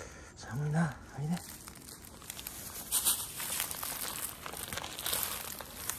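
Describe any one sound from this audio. Dry leaves rustle as a cat walks through them.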